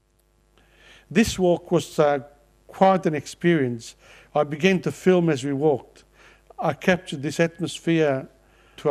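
An older man reads out calmly and clearly into a microphone.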